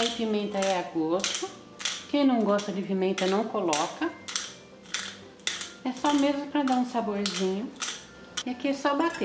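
A pepper grinder crunches and clicks in quick turns.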